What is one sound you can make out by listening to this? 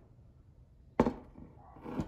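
A spice rack is set down with a knock on a counter.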